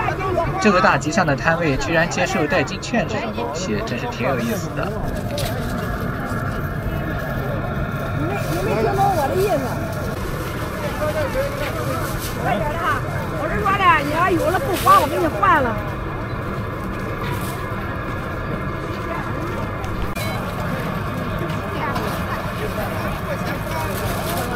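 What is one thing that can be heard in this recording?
A crowd of people chatters outdoors.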